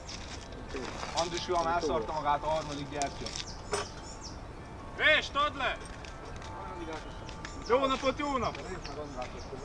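Young men speak loudly nearby, outdoors.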